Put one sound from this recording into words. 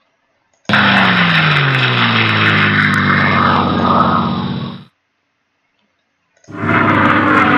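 A tank engine rumbles and revs.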